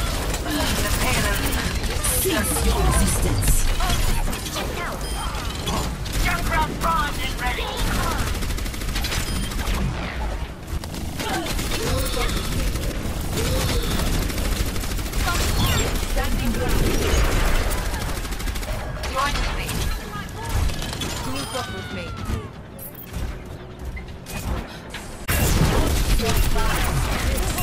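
Video game gunfire crackles in rapid bursts.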